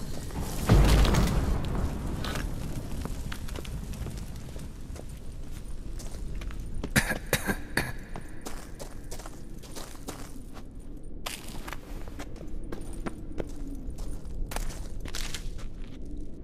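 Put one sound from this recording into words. Footsteps crunch over stone and rubble.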